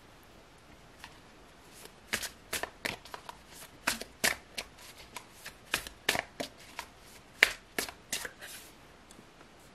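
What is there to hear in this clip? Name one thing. Playing cards riffle and snap as a deck is shuffled.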